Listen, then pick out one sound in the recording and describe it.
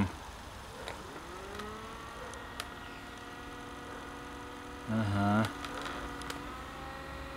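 An electric trolling motor spins up and whines steadily.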